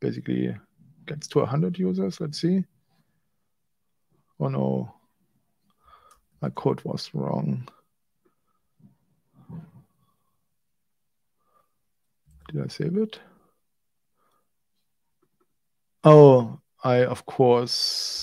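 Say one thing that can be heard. A man talks calmly in pauses, close to a microphone.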